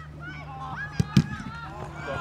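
A football is kicked hard.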